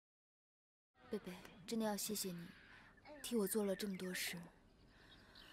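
A young woman speaks warmly and calmly, close by.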